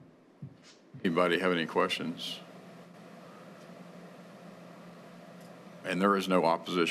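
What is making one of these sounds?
A man speaks briefly through a microphone.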